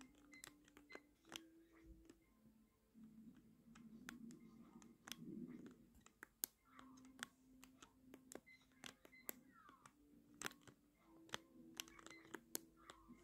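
Video game sounds play from a television nearby.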